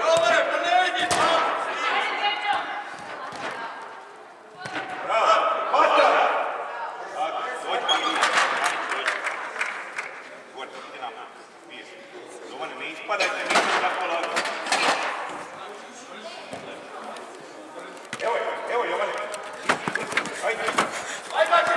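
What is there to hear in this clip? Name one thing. Children shout and call out across a large echoing indoor hall.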